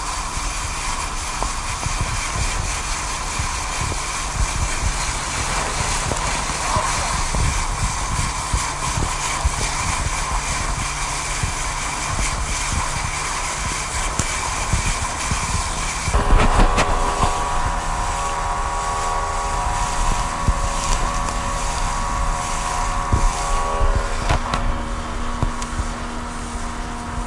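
A small outboard motor runs at speed.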